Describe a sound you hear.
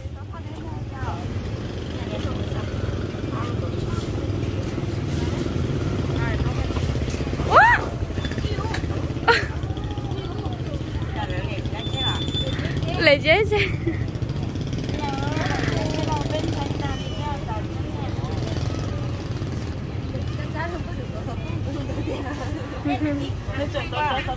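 Women talk nearby.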